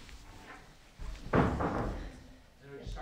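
A chair shifts as a woman sits down.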